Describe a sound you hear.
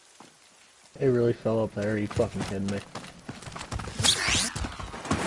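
A rifle fires in short bursts.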